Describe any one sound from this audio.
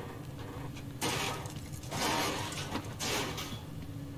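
A metal grate is wrenched open with a loud grinding screech.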